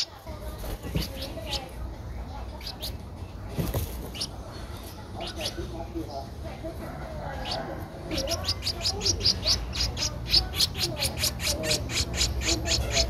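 Nestling birds peep with high, sharp chirps that grow fast and insistent.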